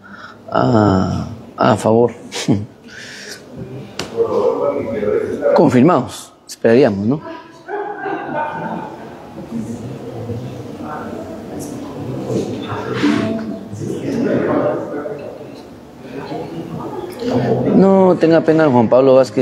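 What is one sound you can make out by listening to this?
A group of men and women speak and call out in a room nearby, heard through an open doorway.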